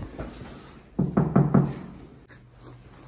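A hand knocks on a wooden door.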